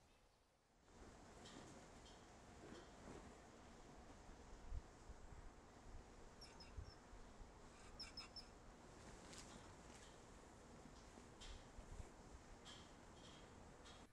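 Sheets flap and rustle in the wind outdoors.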